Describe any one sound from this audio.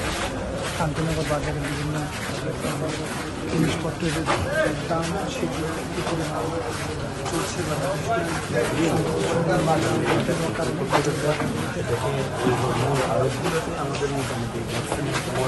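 A crowd murmurs and chatters nearby.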